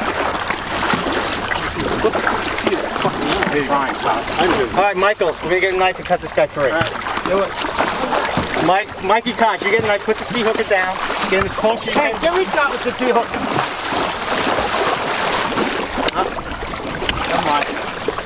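Water splashes and churns as a large fish thrashes beside a boat.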